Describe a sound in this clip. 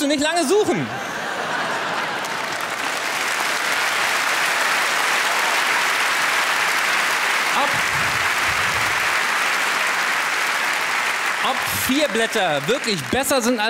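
A large audience claps and cheers in a big hall.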